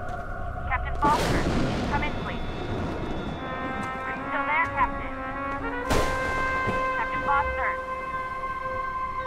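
Waves crash onto a rocky shore.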